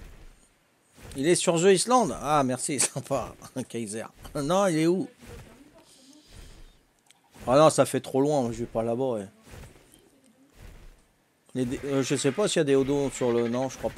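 A middle-aged man talks through a headset microphone.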